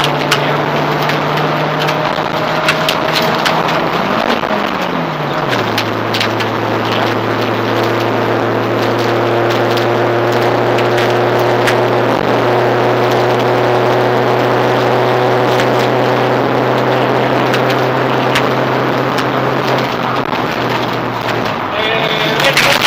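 Gravel rattles and pings against the underside of the car.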